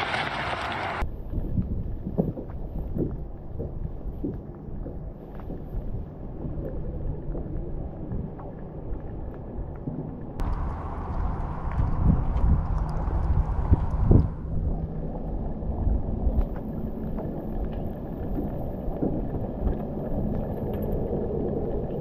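Wind blows outdoors over open water, rumbling into the microphone.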